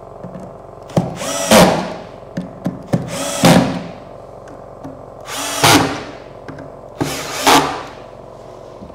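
A cordless drill whirs in short bursts as it drives screws.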